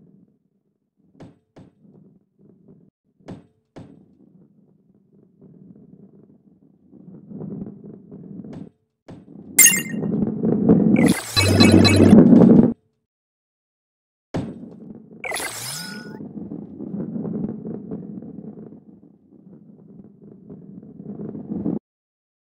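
A ball rolls with a low rumble along a track.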